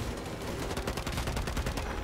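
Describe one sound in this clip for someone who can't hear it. Gunshots crack.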